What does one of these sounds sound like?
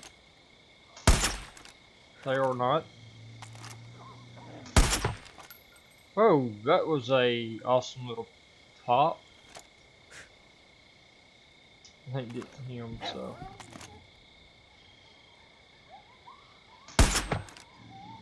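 A rifle fires loud, sharp single shots.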